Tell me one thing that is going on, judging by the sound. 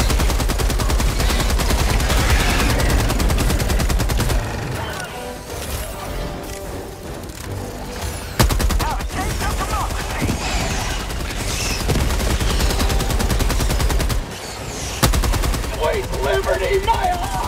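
A rapid-fire gun shoots in long, fast bursts.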